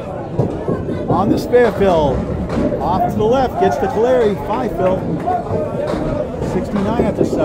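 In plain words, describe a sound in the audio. A bowling ball rolls down a lane.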